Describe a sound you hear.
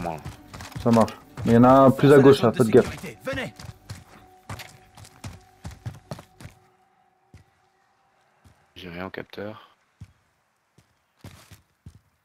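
Footsteps run quickly over dirt and gravel.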